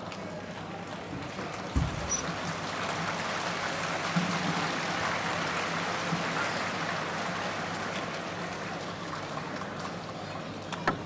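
A large crowd cheers and roars in an echoing hall.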